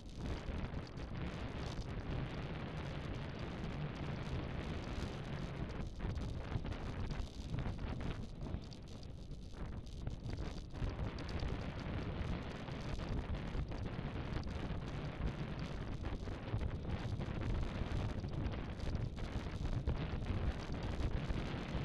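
Tyres hum steadily on a paved path.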